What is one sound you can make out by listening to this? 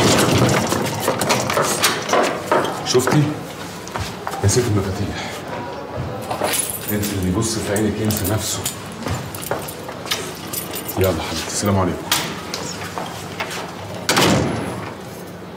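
A man speaks loudly and agitatedly nearby.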